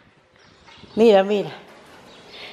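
A small dog barks nearby.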